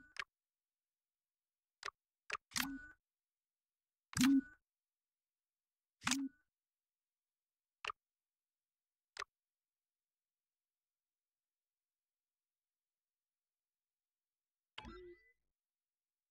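Game menu sounds click and whoosh as options are chosen.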